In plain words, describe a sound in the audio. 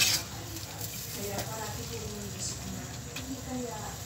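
A wooden spatula stirs and scrapes through thick sauce.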